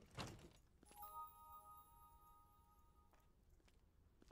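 A bright chime rings out and fades.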